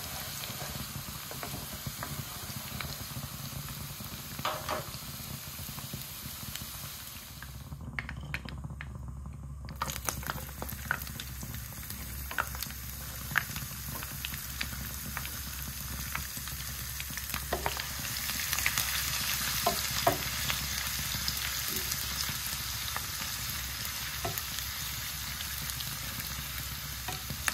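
A wooden spoon scrapes and taps against a pan.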